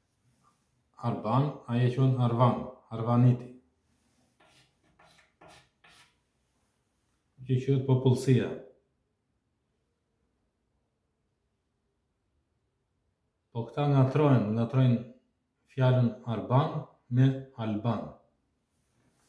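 A middle-aged man speaks calmly and close by, in short bursts.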